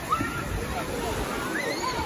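Water splashes as a man swims.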